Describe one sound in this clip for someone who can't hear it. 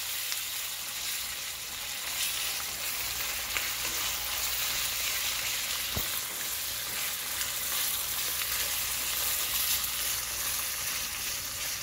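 A wooden spoon scrapes and stirs in a steel pan.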